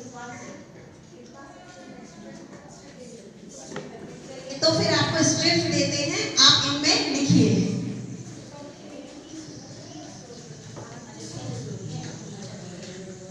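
A woman speaks through a loudspeaker in an echoing hall.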